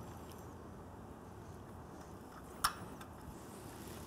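A hand wrench clicks and scrapes against metal bolts.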